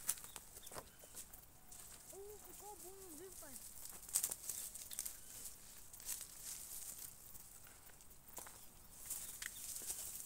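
Dry leaves rustle and crackle as plants are pulled from the ground.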